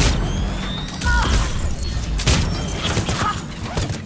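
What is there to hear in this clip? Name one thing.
An electric blast crackles and zaps.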